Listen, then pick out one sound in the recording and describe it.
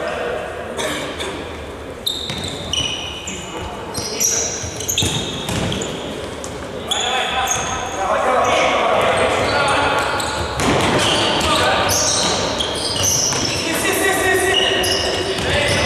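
Sneakers squeak sharply on a hard floor in an echoing hall.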